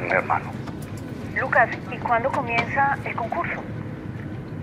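A young woman asks a question calmly, close by.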